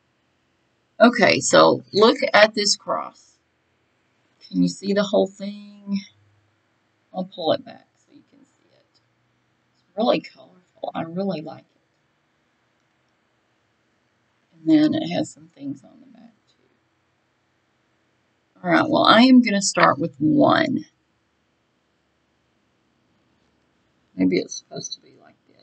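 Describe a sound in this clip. A middle-aged woman talks calmly and close to a microphone, in short bursts with pauses.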